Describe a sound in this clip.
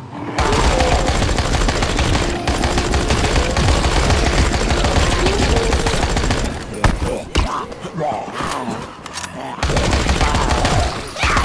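An automatic rifle fires rapid bursts at close range.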